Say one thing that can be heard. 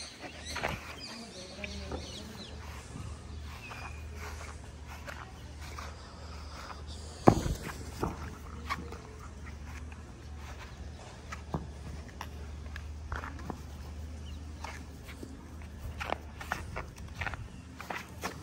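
Footsteps swish through grass.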